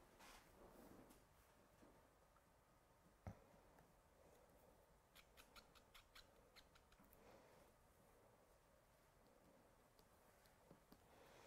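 A marker pen taps and scratches lightly on paper.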